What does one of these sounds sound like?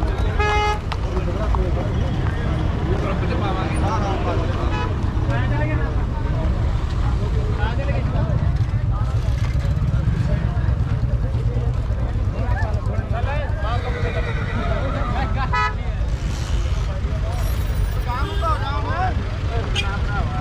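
A crowd of men talk in the background outdoors.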